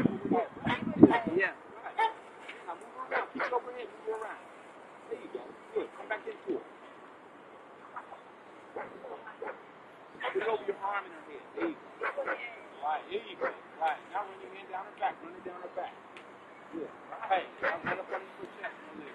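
A dog growls and barks.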